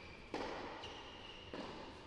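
Footsteps tread on a hard court in a large echoing hall.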